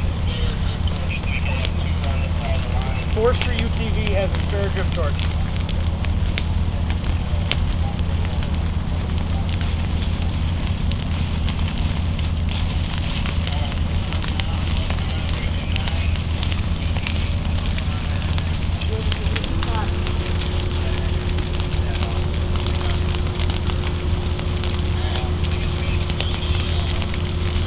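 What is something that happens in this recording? Footsteps crunch through dry leaves and grass.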